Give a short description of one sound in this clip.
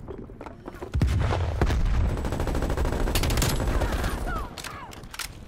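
Guns fire in rapid bursts, booming loudly.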